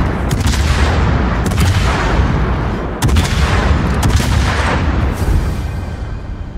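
Shells explode with loud, rumbling bangs.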